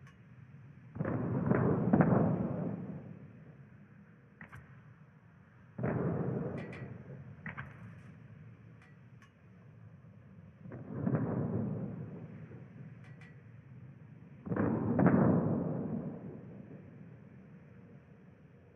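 Heavy ship guns fire in loud booming salvos that rumble away.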